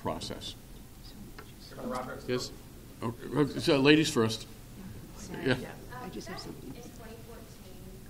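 A middle-aged man speaks with animation into microphones.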